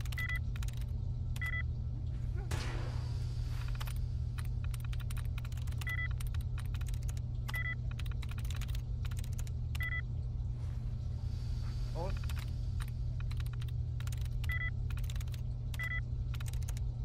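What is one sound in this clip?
A computer terminal gives short electronic beeps.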